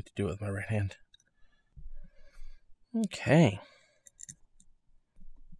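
Small metal parts click and clink softly.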